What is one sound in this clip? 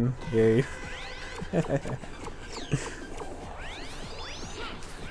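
A game character fires laser shots with sharp electronic zaps.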